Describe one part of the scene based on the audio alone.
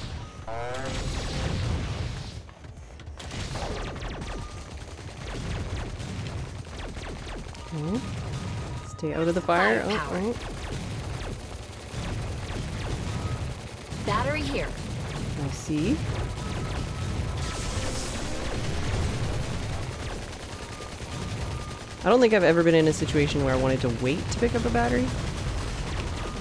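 Rapid gunfire rattles on without a break.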